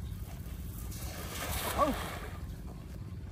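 A cast net splashes into water.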